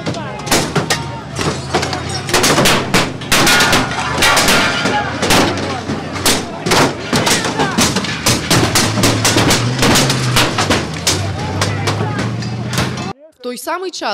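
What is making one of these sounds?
A crowd of men shouts and yells nearby.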